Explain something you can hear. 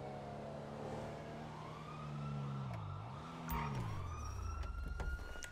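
A car engine hums and slows to a stop.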